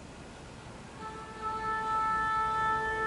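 Brass instruments play a sustained chord.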